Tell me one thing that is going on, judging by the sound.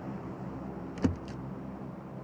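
A door clicks open.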